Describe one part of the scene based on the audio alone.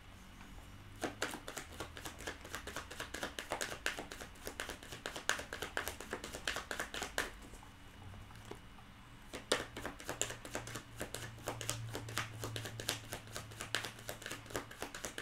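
Small objects click and tap rapidly in a woman's hands.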